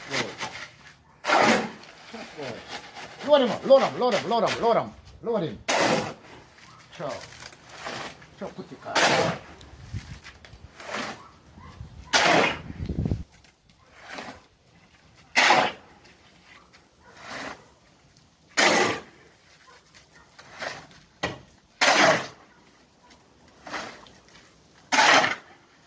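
A shovel scrapes and digs into gravel again and again.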